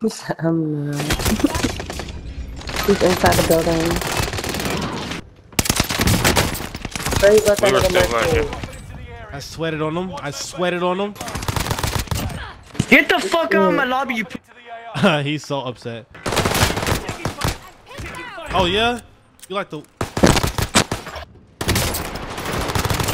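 Gunshots fire rapidly in bursts.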